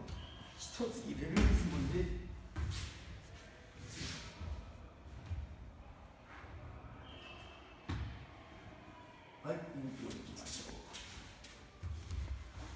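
Cloth uniforms rustle and swish with quick movements.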